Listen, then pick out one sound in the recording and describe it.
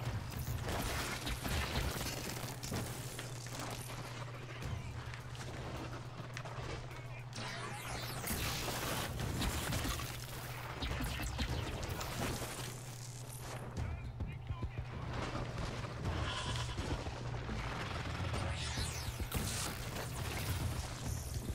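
Game energy blasts crackle and boom.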